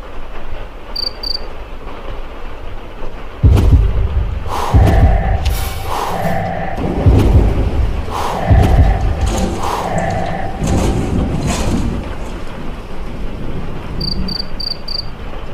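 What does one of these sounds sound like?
A soft chime rings several times in quick succession.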